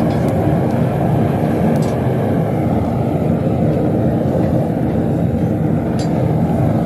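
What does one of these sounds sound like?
A furnace roars steadily.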